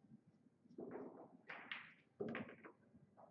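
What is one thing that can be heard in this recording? A cue strikes a billiard ball.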